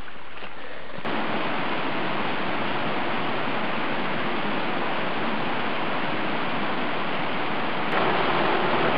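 Water trickles through a small stream.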